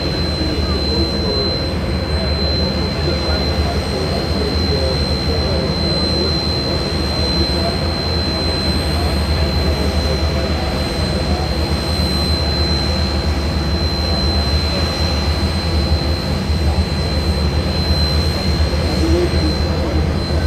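An engine drones steadily outdoors.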